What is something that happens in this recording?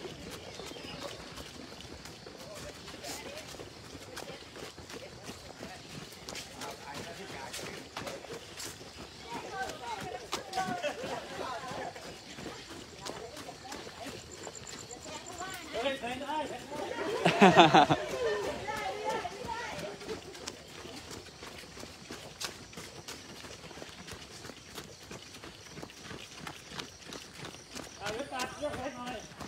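Many footsteps patter on pavement as a group jogs past.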